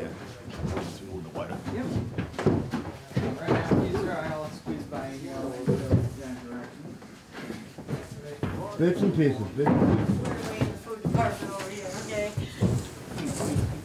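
A large board scrapes and knocks as it is handled.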